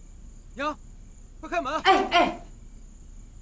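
A young woman calls out urgently.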